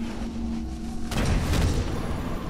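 An explosion bursts with a crackling blast.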